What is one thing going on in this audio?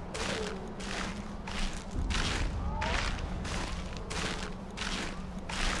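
Leaves and vines rustle in bursts as someone climbs.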